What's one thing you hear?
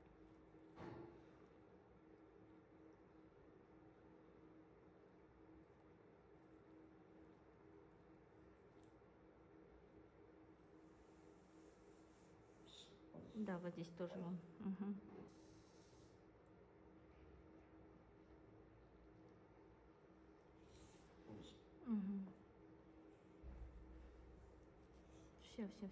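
Small nippers snip softly with faint clicks.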